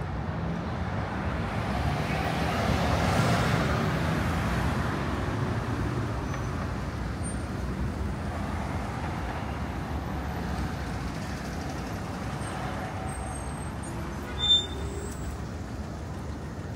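Traffic rumbles steadily in the background outdoors.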